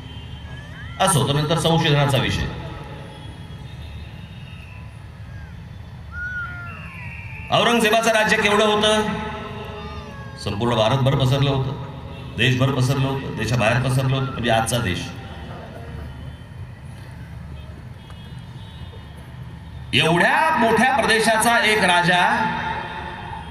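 A man speaks forcefully through loudspeakers, in bursts with pauses.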